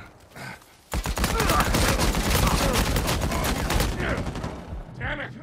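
A submachine gun fires rapid bursts of shots.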